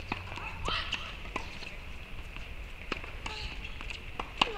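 A tennis ball bounces repeatedly on a hard court outdoors.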